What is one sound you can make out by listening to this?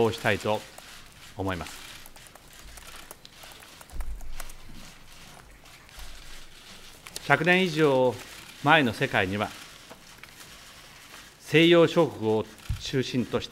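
A middle-aged man speaks calmly and formally into a microphone, with long pauses.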